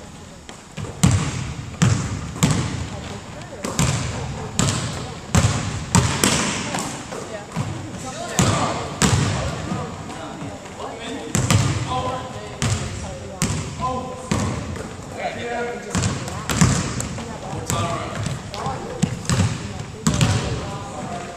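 A basketball bounces again and again on a wooden floor, echoing through a large hall.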